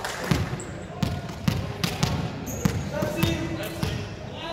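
A volleyball thumps on a hard gym floor.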